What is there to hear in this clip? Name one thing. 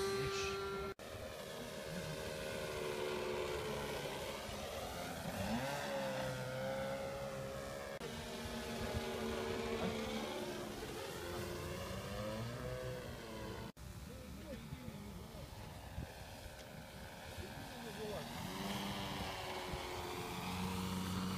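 A model plane's motor buzzes overhead, rising and falling in pitch as it flies around.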